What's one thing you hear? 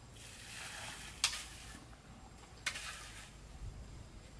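Tools scrape and slosh over wet concrete.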